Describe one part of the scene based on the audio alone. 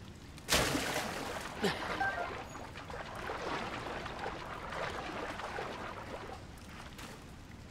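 Water swishes and churns as a swimmer strokes through it.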